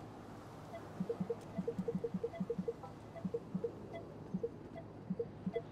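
Short electronic beeps sound in quick bursts.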